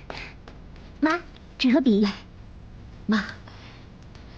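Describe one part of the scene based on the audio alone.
A young woman laughs brightly nearby.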